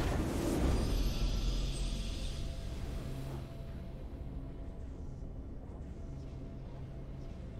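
A triumphant victory fanfare plays and fades.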